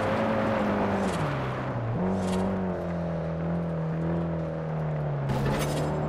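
Tyres screech as a car slides through bends.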